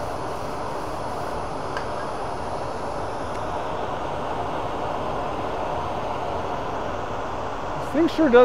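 A lathe motor hums steadily as the workpiece spins.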